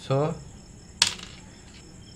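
A small part taps on a wooden table.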